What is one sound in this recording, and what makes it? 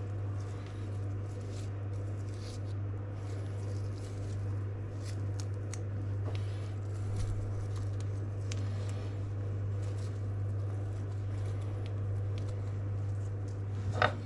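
Fingers pluck and tear leaves from a strawberry with soft crisp snaps.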